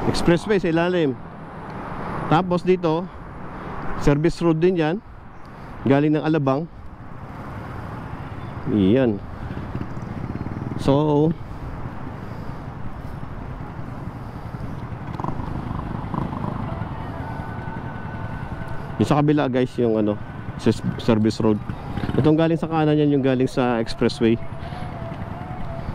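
A motorcycle engine hums.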